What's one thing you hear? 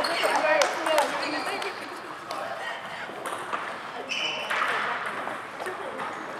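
A ping pong ball clicks back and forth on paddles and a table, echoing in a large hall.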